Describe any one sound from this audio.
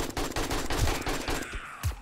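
A rifle fires a sharp shot.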